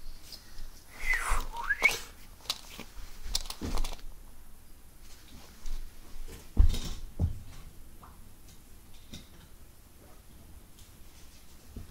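Footsteps thud softly on a carpet nearby.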